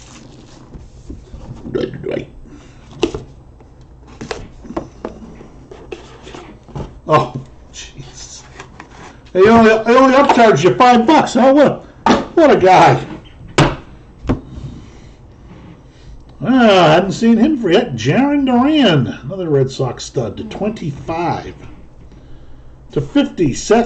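Cardboard boxes and plastic cases tap and rustle as they are handled.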